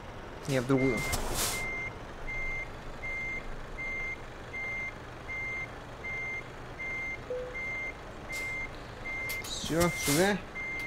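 A truck's reversing alarm beeps steadily and evenly.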